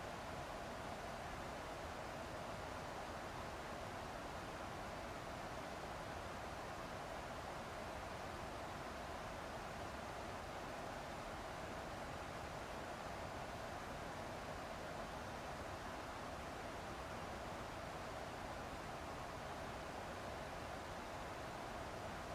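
Jet engines drone steadily with a low rushing roar.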